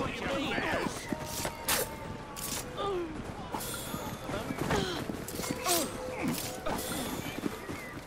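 Punches land with sharp thuds in a brawl.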